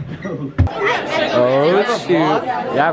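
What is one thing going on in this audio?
Young people chatter around in an echoing space.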